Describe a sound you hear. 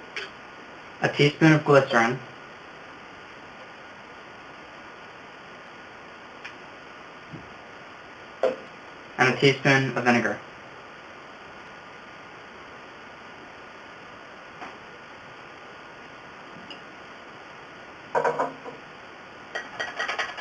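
A young man speaks calmly, close by, in short bursts.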